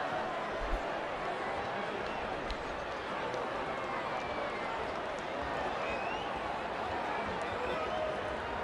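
A large crowd murmurs and cheers steadily in an open stadium.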